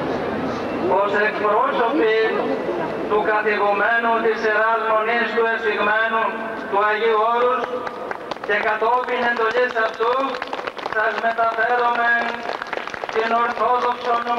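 A man speaks forcefully through a loudspeaker.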